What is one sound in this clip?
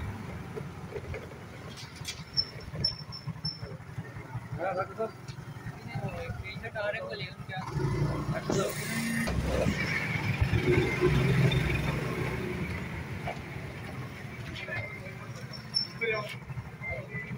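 A motorbike engine runs nearby.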